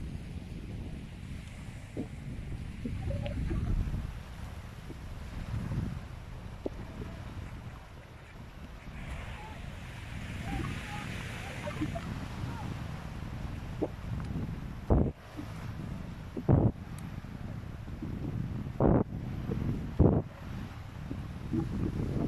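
Small waves wash gently onto a rocky shore.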